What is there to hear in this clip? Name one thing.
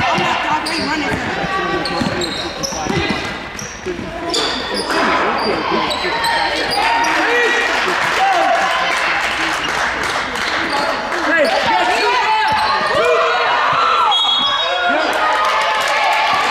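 A basketball bounces on the floor as a player dribbles.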